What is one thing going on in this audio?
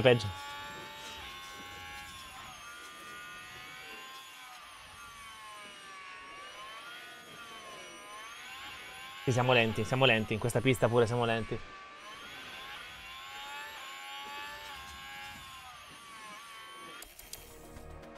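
A racing car engine whines at high revs, its pitch rising and falling.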